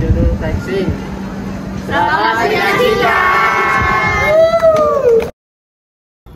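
A group of teenagers shouts and cheers together close by.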